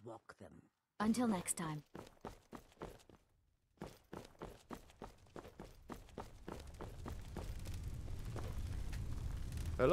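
Footsteps crunch steadily on a stone path.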